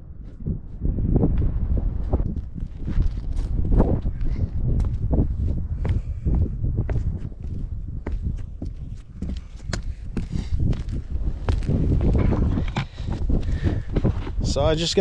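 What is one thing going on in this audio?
Boots scuff and crunch on roof shingles.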